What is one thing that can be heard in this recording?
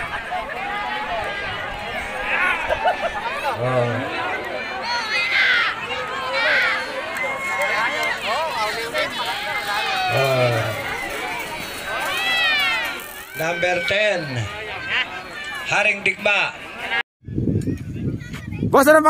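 A large outdoor crowd of men and women shouts and cheers excitedly.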